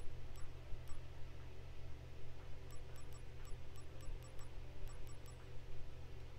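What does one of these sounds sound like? Soft menu clicks tick in quick succession.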